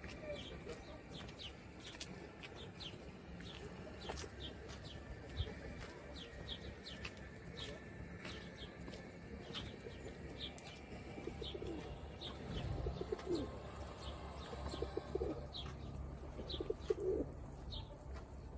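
Footsteps scuff steadily on a stone path.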